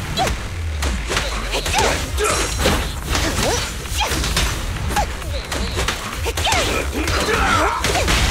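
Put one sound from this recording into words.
Metallic hits and crackling sparks burst repeatedly.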